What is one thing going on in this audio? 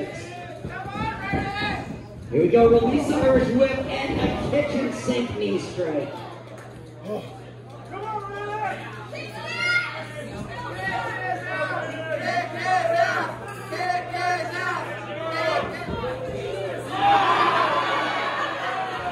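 A crowd in a large echoing hall shouts and cheers.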